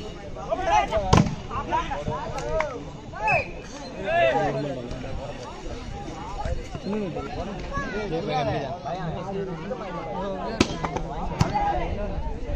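A crowd of onlookers cheers and chatters.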